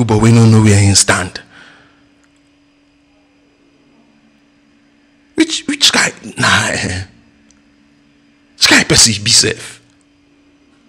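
A man speaks into a close microphone in short bursts, with pauses between them.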